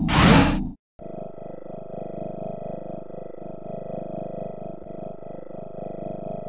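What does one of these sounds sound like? Soft, gentle music plays.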